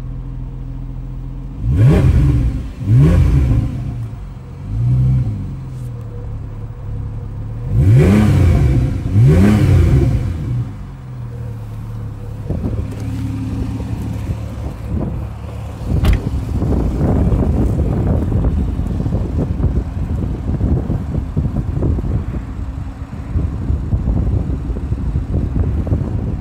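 A sports car engine idles with a steady low rumble.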